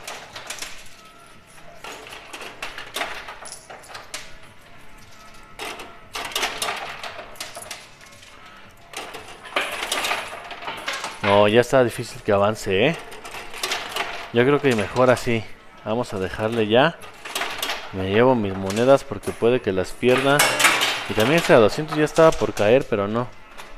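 Coins clink and clatter as they drop onto a coin pusher machine.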